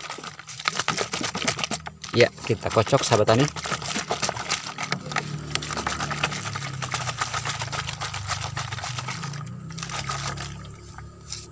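A plastic bottle crinkles and crackles as it is handled.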